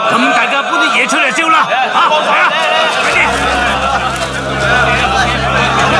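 A group of men shout excitedly.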